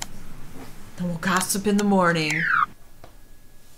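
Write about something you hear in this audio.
A short descending game chime plays as a menu closes.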